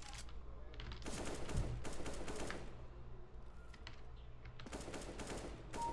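A rifle fires a quick burst of shots.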